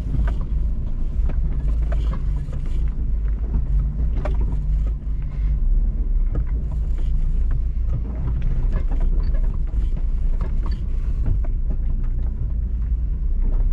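A truck engine rumbles low and steady as it crawls over rough ground.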